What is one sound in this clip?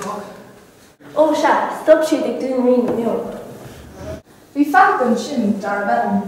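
A teenage girl speaks nearby.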